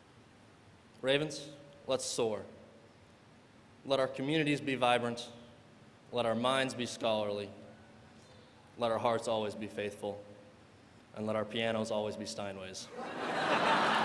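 A young man speaks calmly into a microphone in a large echoing hall.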